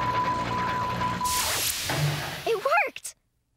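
A machine hums and shimmers with a whooshing sound.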